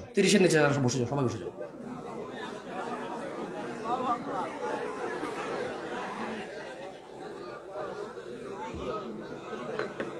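A man preaches loudly and with fervour through a microphone and loudspeakers.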